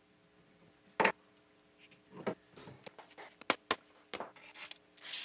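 Metal taps sharply on metal.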